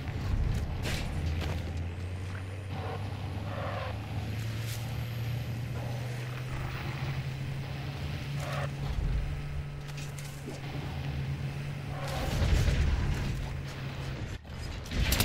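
A vehicle engine drones steadily.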